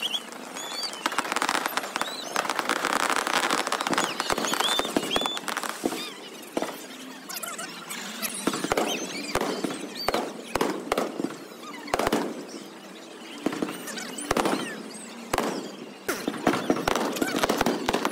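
Fireworks bang and crackle overhead.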